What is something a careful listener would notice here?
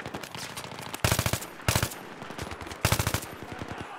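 A rifle fires short, rapid bursts of shots.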